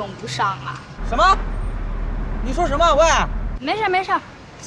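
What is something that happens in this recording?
A young man answers loudly through a phone.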